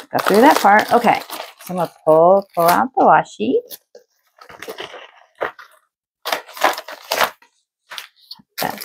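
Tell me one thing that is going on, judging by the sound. A foil mailer crinkles and rustles as it is handled.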